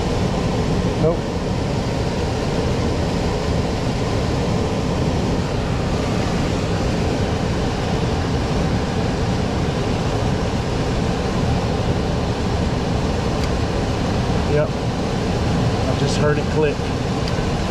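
Wire connectors click and rustle as they are handled.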